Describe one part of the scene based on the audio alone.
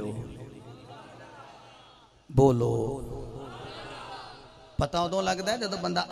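A man speaks with animation into a microphone, his voice echoing.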